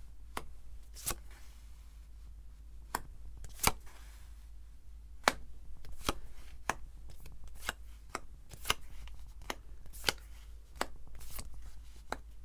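Cards tap and slide softly on a cloth surface.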